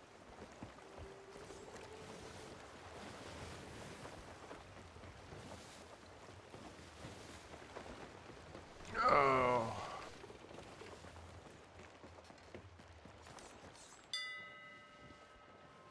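Ocean waves wash and roll steadily.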